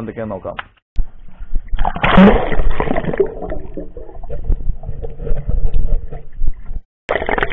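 Water bubbles and rushes, heard underwater.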